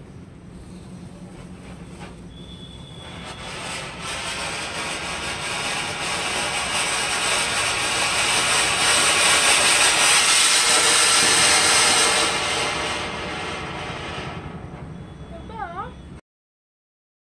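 A fountain firework hisses and crackles as it sprays sparks, building up and then dying down.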